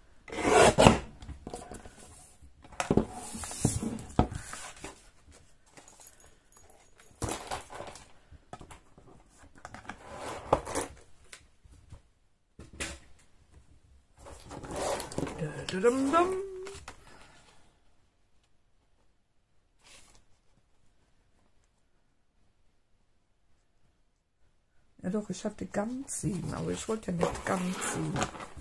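Paper rustles and scrapes as it is handled.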